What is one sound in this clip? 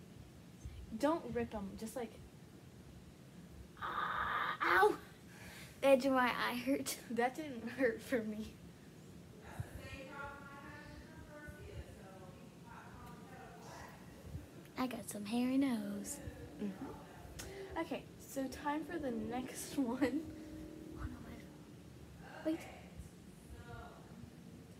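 Young girls talk and laugh close by.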